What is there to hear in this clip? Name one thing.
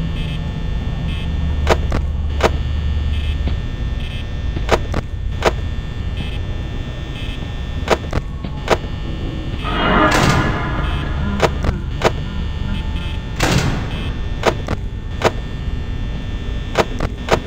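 An electric desk fan whirs steadily.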